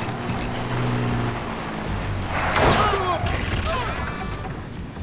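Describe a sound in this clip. A jeep engine roars as it drives past.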